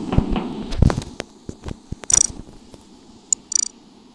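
Soft game menu clicks sound as options are picked.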